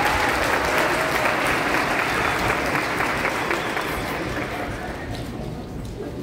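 An audience claps and cheers in a large hall, then the applause fades.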